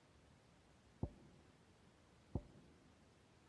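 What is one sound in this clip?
A short menu click sounds a few times.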